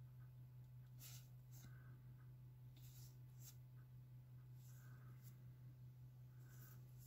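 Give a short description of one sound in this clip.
Trading cards rustle and slide as they are flipped one at a time.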